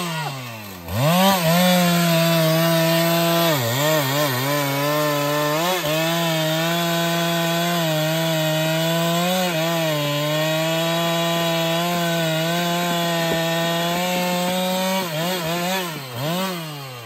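A chainsaw roars steadily as it cuts through a log.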